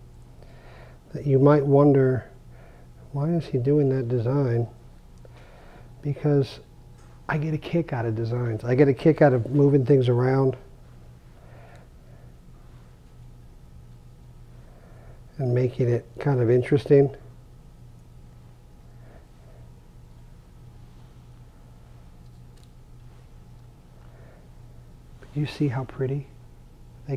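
A man talks calmly close to a microphone, in short bursts with pauses.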